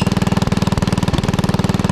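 A metal post driver clanks onto a fence post.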